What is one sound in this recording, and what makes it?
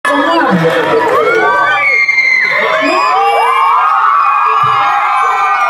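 A large crowd cheers and screams close by.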